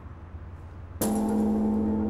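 A large bell is struck and booms with a deep, ringing tone.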